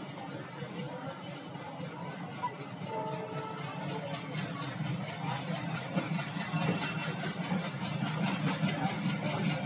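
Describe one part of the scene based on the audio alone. A passenger train rumbles past close by.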